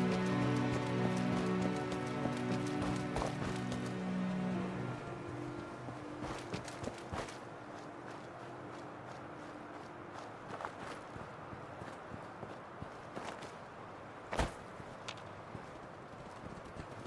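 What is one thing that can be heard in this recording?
Footsteps crunch through dry grass and brush.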